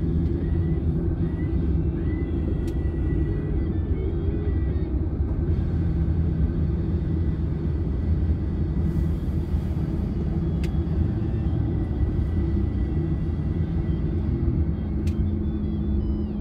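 Traffic rumbles low along a busy road.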